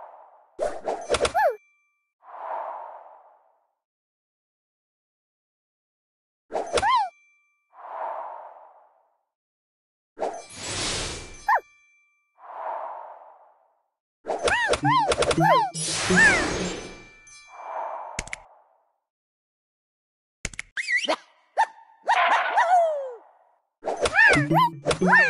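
Cheerful game chimes and pops sound as tiles match and burst.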